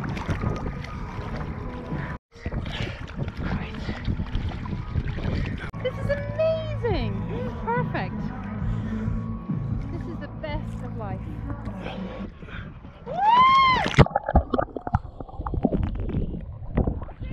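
Water laps and splashes close by, outdoors.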